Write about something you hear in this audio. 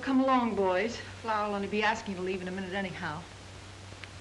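A woman speaks with feeling.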